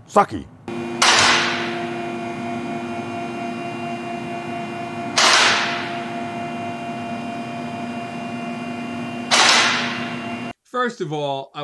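A lift motor hums steadily with a whine.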